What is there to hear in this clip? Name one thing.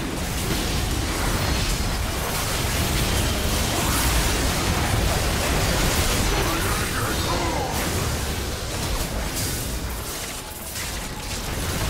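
Magic blasts and clashing weapons burst and crackle in a busy fight.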